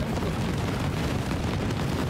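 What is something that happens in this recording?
Footsteps tread on a dirt road.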